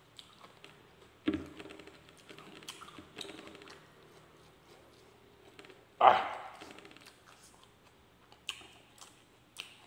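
Fingers squish and press soft rice.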